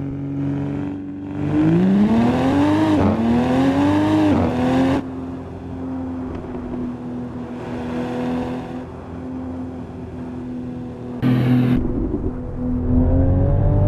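A car engine hums steadily while cruising.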